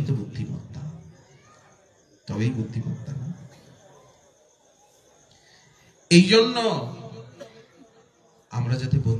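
A man preaches with animation into a microphone, his voice carried over a loudspeaker.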